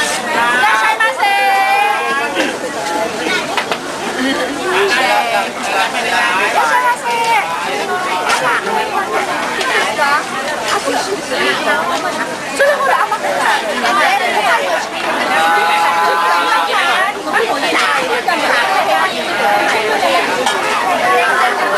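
A crowd of people chatters loudly close by.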